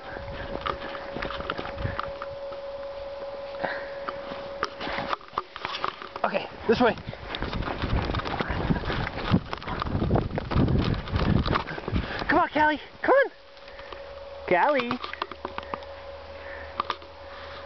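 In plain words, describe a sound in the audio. A small dog bounds through deep snow, crunching it.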